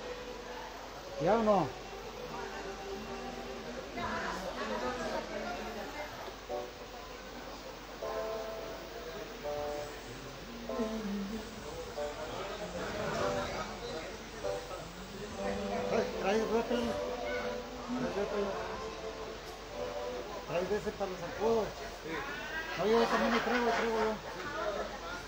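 A keyboard plays a melody through loudspeakers.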